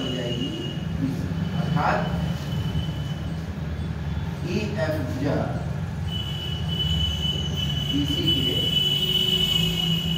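A marker squeaks and scratches across a whiteboard.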